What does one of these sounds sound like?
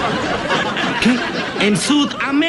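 A young man talks loudly and excitedly.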